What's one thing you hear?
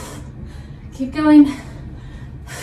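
A young woman grunts loudly with effort.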